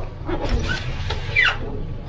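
Fish slap wetly onto a metal tray.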